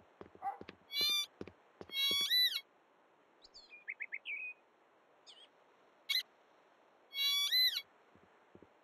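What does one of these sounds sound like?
A metal detector beeps in short bursts of rising and falling tones.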